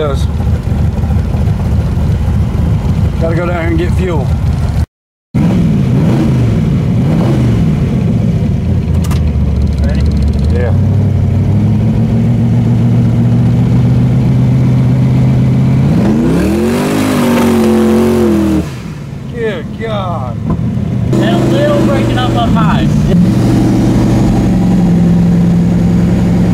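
A car engine drones steadily, heard from inside the car.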